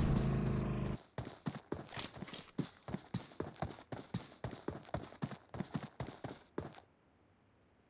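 Footsteps tread quickly over ground.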